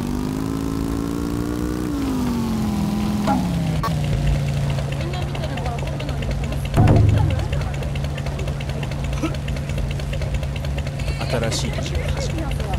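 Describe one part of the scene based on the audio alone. A scooter engine hums, then drops in pitch and idles steadily.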